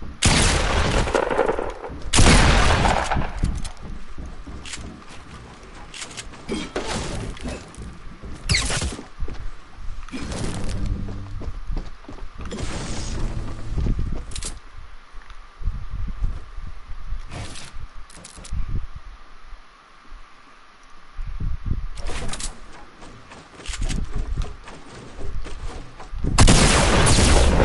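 Wooden walls are built with quick clunks.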